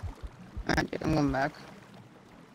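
A small creature lets out a short warbling squeal underwater.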